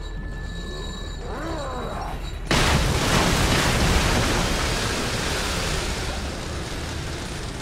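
A man's footsteps crunch on scattered debris.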